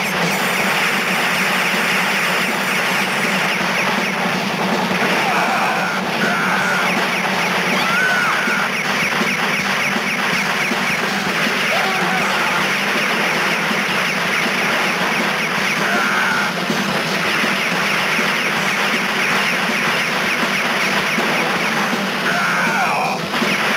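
Game music plays loudly throughout.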